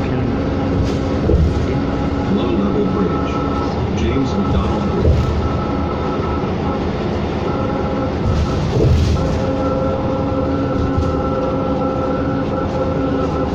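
A bus engine hums and drones steadily while driving.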